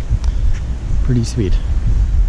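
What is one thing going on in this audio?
A man speaks a few quiet words close by.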